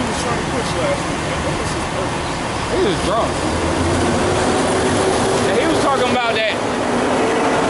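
A man speaks nearby in short phrases.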